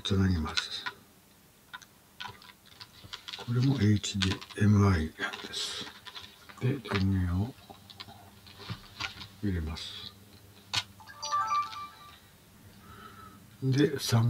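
Small plastic parts click and knock as a camcorder is handled.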